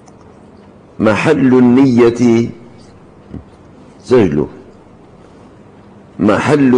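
An elderly man speaks with emphasis into a microphone, in short bursts with pauses.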